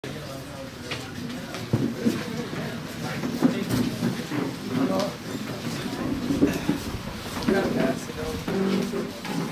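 Several men talk nearby in a room.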